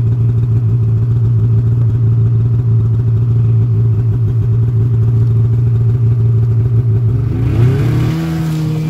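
A snowmobile engine idles with a steady, throbbing rumble close by.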